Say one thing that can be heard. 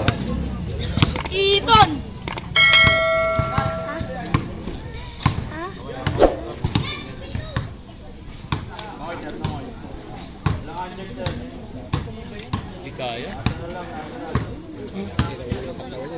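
A basketball bounces repeatedly on a concrete court.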